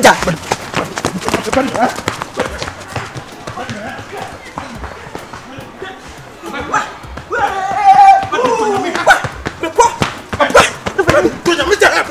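Footsteps pound quickly on sandy ground as men run.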